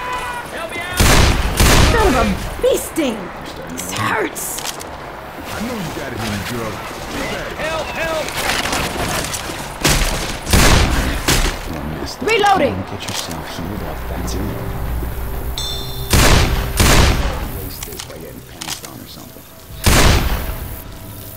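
A pistol fires shots.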